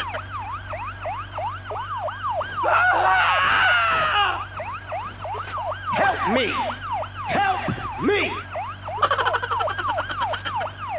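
An ambulance siren wails in a fast, repeating rise and fall.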